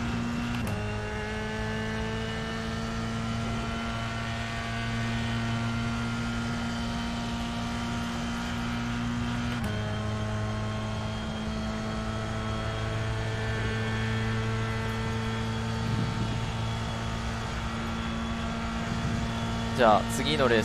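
A racing car engine drones steadily and rises in pitch as it speeds up, dropping at each gear change.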